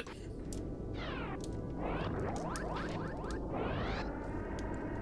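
Electronic laser shots from a video game zap in quick, falling bursts.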